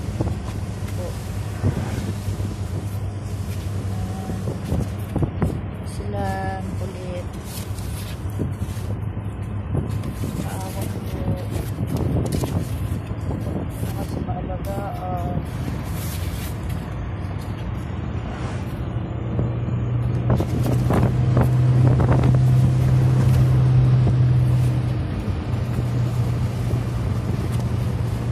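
A truck engine hums steadily inside the cab.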